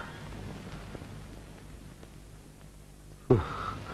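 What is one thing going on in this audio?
A man murmurs softly nearby.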